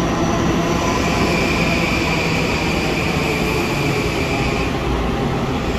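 Train wheels squeal with a high steady tone.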